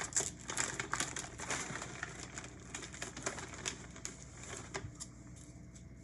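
A plastic snack bag crinkles and rustles close by.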